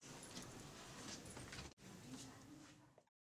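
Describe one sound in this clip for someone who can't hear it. A young girl speaks softly nearby.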